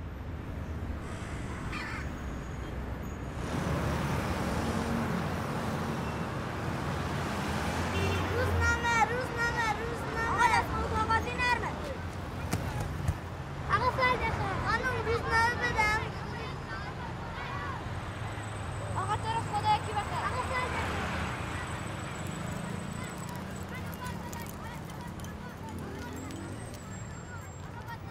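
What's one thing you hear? Traffic rumbles steadily on a busy street.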